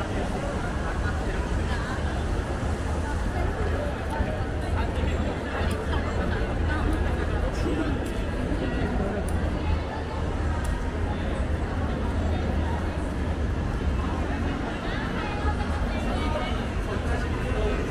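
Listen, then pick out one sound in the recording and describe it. Men and women chat nearby as they pass.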